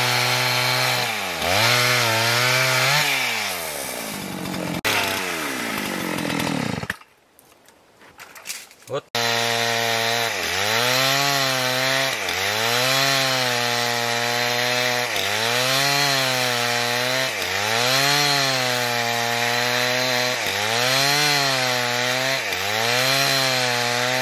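A chainsaw engine roars and bogs down as it cuts through wood, then revs up again in repeated cycles.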